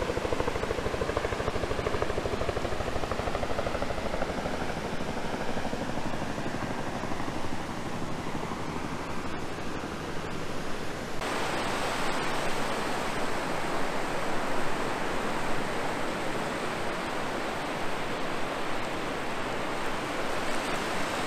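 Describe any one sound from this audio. Waves wash and break gently on a shore.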